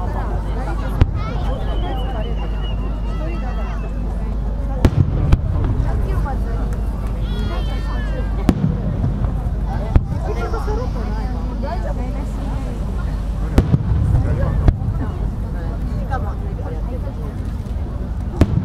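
Fireworks burst with loud booming bangs in the open air.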